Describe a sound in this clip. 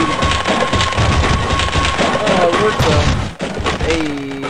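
Wooden boards smash and splinter.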